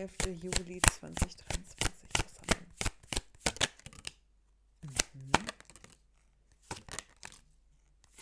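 A glass bottle clicks and taps in a woman's hands.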